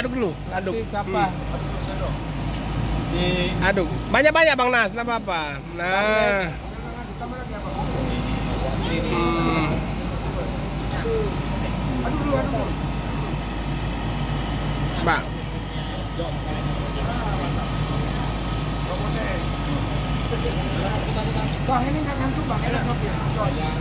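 Several men talk close by.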